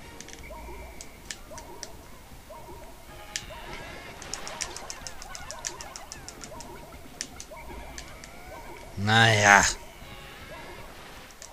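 Tiny game creatures chirp and chatter in high squeaky sounds.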